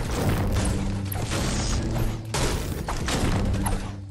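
A pickaxe strikes wood with repeated heavy thuds.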